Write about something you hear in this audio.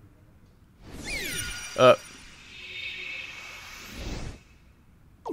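A magical chime shimmers and rises.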